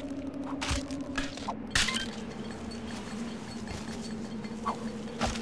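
Light footsteps patter on a soft surface.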